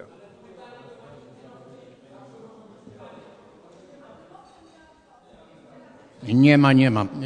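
People murmur quietly in the background.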